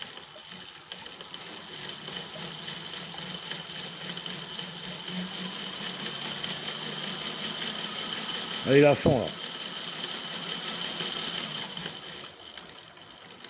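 A small electric motor whirs.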